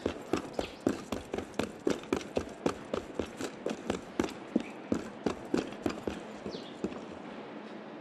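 Footsteps run quickly across roof tiles.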